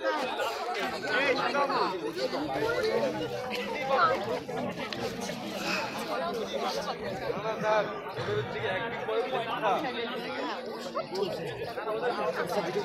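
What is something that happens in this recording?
A crowd of boys chatters all around, close by, outdoors.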